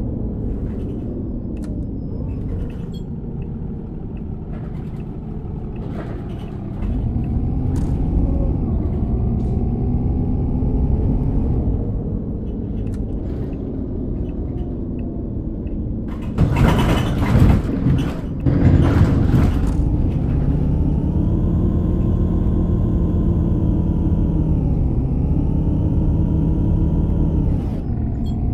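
A bus engine hums steadily and rises in pitch as it speeds up.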